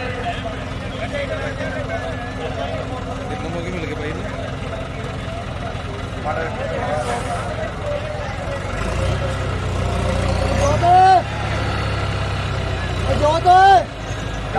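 A tractor engine rumbles nearby and grows louder.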